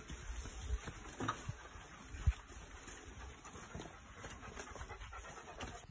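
Footsteps rustle through tall grass and plants.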